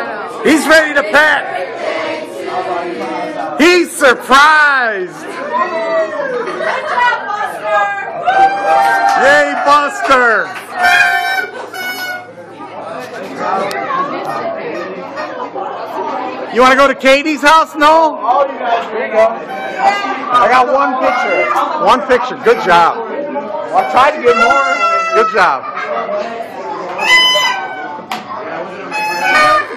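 A crowd of teenagers and young adults talks and shouts with excitement indoors.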